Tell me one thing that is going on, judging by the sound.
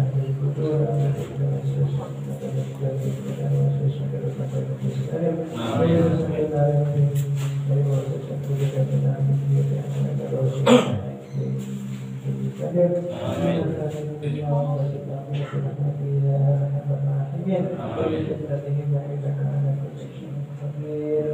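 Young women sing a slow, steady chant together nearby.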